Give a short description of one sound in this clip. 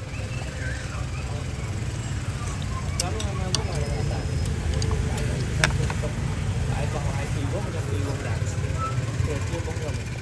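Chopsticks and a spoon clink against a bowl.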